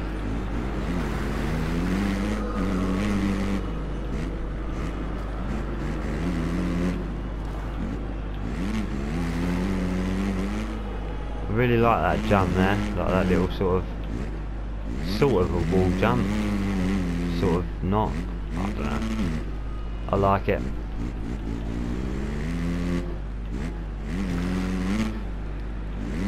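A motorbike engine revs high and drops as it changes gear.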